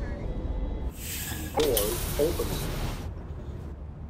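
Bus doors open with a loud hiss of air.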